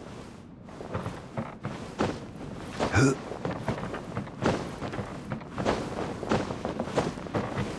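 Footsteps thud on wooden boards and a ladder.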